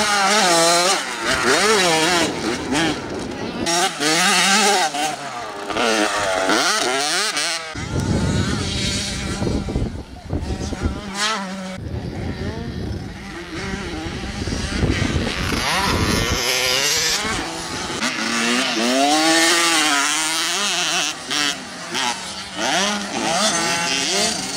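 A small dirt bike engine revs high and whines up and down in pitch.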